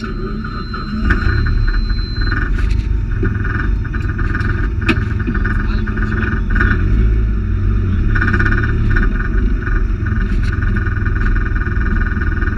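A turbocharged four-cylinder rally car engine revs, heard from inside the cabin.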